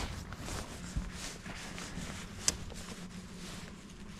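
Fishing line rustles and ticks softly as hands rig it.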